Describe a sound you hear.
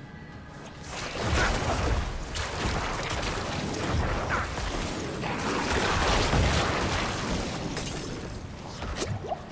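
Weapons clash and bones crunch in a fast game battle.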